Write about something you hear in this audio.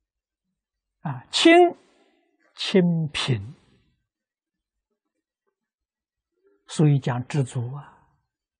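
An elderly man speaks calmly and slowly in short phrases, close to a microphone, with long pauses.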